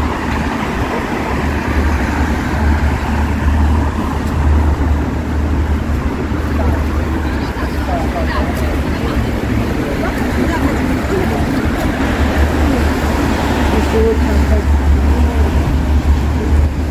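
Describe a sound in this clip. Footsteps tap on a wet pavement.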